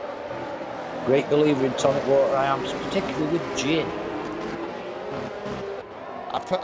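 Racing car engines roar at high speed.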